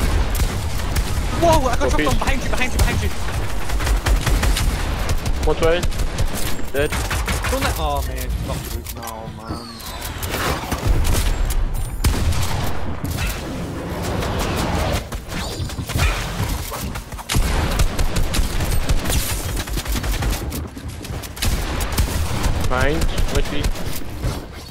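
Gunshots fire in quick bursts, close by.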